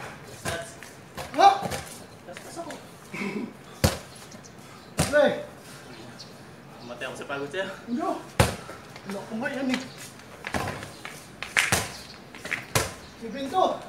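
A basketball bounces on a hard court, echoing off walls.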